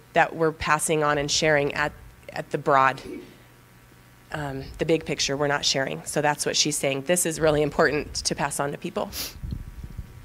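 A young woman speaks with animation through a microphone in a room with some echo.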